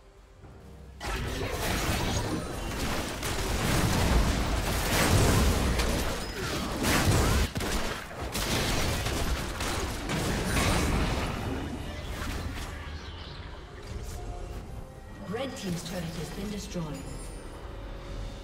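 Video game battle effects clash and crash.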